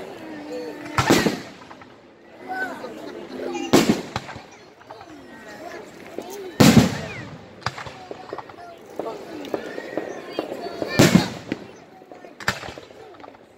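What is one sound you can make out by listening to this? Fireworks burst with loud booming bangs.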